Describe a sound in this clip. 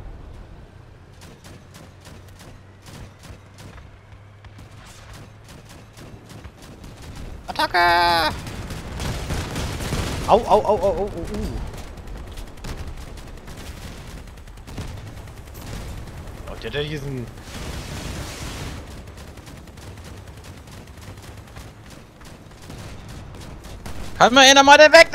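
Guns fire rapidly in bursts.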